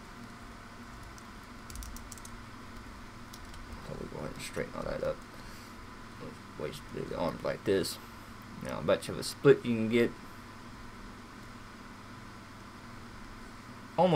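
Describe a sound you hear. Plastic joints of a toy figure click softly as they are moved.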